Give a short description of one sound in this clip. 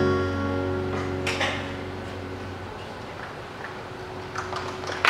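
Music with held notes plays through loudspeakers in a large hall and fades.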